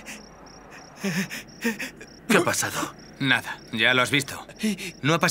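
A young man speaks urgently and loudly.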